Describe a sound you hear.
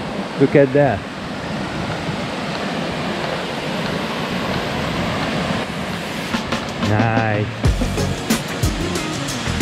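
Water splashes steadily over a small weir.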